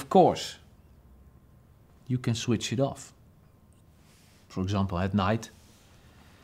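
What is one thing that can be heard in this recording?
A middle-aged man speaks calmly and closely in short phrases.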